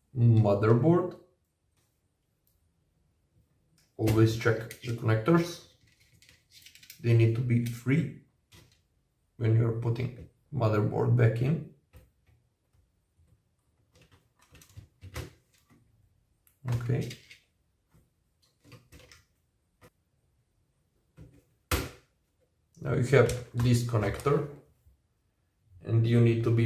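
Small plastic and metal parts click and rattle as a laptop is taken apart.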